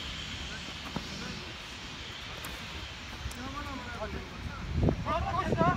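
A football is kicked with a dull thud.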